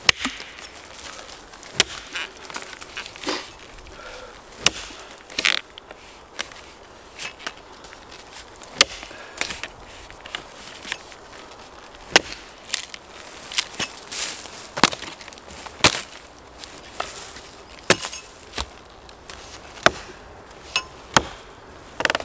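An axe strikes wood with sharp, repeated knocks.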